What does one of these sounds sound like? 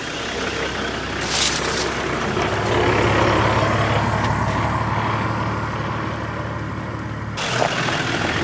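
Branches and leaves scrape against the side of a vehicle.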